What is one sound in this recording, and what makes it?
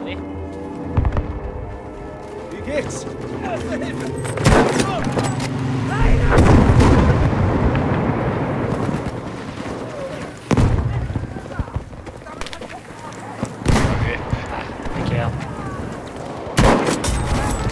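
A rifle fires loud, sharp shots every few seconds.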